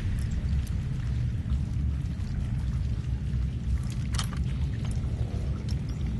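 Small metal clicks and scrapes come from a lock being picked.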